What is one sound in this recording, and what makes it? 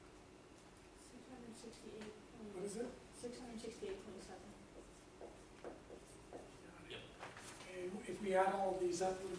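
A middle-aged man talks calmly in an echoing room.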